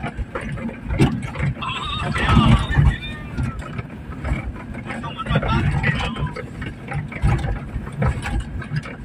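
A vehicle drives over a rough dirt road.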